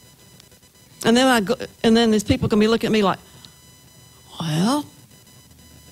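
A woman sings into a microphone, heard through loudspeakers in a room.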